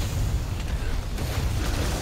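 A blade strikes a monster's hide with heavy hits.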